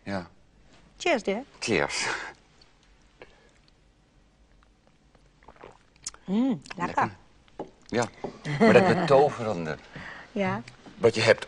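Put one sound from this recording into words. A middle-aged man speaks nearby.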